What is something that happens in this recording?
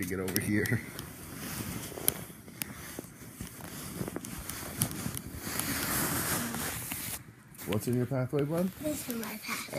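Clothing rustles against a phone close by.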